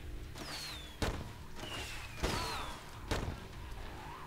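Heavy blows thud into bodies in quick succession.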